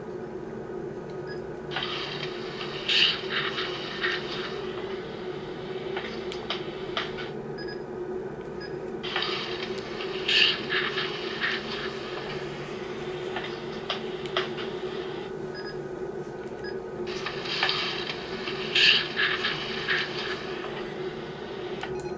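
Fingers rub and tap against a small plastic device close by.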